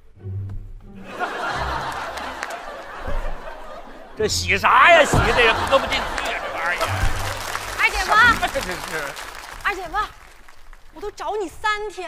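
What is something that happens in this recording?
An audience laughs and applauds in a large hall.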